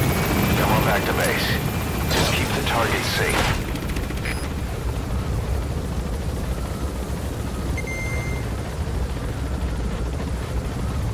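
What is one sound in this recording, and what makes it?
A helicopter's rotor drones with a steady low rumble.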